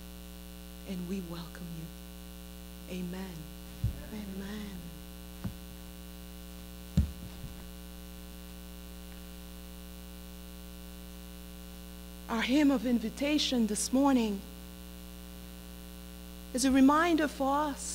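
A middle-aged woman speaks slowly and with feeling into a microphone.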